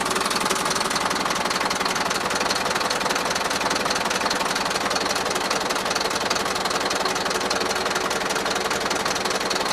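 A diesel engine idles loudly with a rapid, steady clatter close by.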